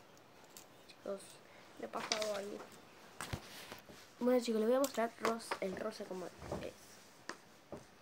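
A young girl talks calmly close by.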